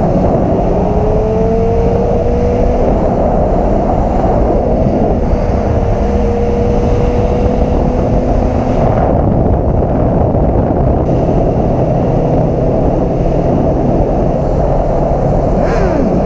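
A motorcycle engine roars and hums steadily at high speed.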